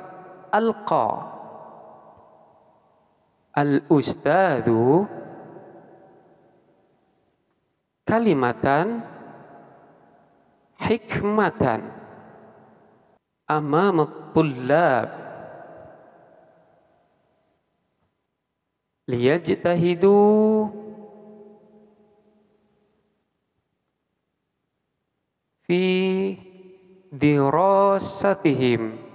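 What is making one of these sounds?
A man speaks calmly into a headset microphone, in short phrases with pauses.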